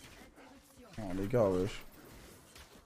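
A young man briefly cries out loudly.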